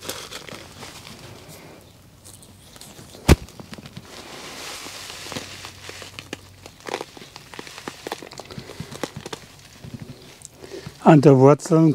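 Soil crumbles and rustles as a hand handles a clump of roots.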